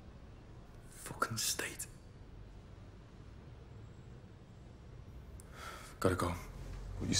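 A man speaks quietly and briefly, close by.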